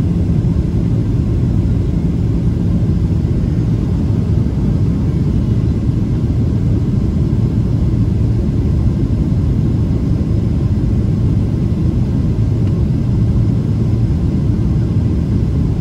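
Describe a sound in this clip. Jet engines roar steadily inside an airliner cabin in flight.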